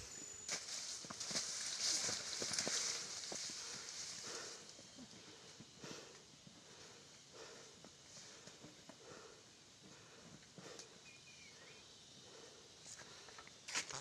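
A buffalo drags a load that scrapes and rustles along the ground.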